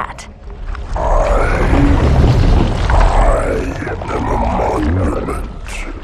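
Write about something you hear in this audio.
A huge creature lets out a long, wavering screech.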